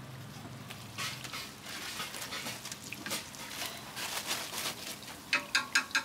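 Hot oil sizzles and crackles.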